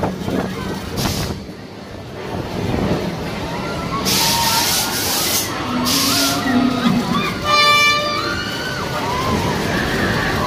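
A large fairground ride's swinging arm rushes through the air with a whoosh.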